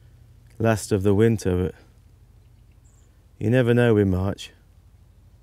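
A man speaks calmly and close by, through a microphone.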